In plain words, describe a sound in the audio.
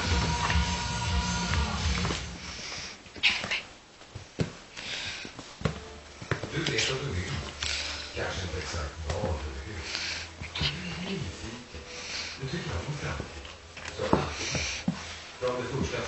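A rubber clog knocks and scrapes on a hard floor.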